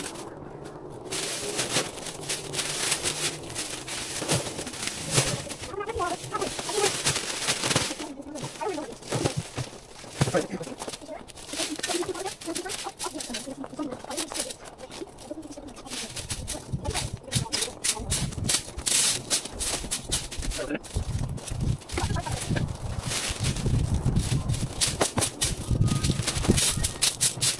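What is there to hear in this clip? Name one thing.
Dry plant stalks rustle and crackle as they are handled.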